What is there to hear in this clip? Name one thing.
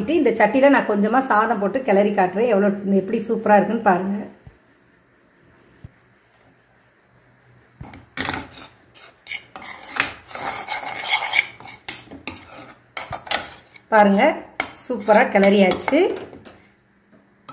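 A metal spoon scrapes and stirs in a pan.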